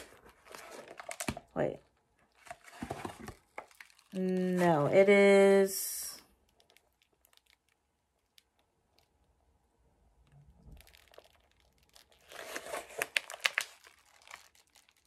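A plastic bag crinkles and rustles in hands.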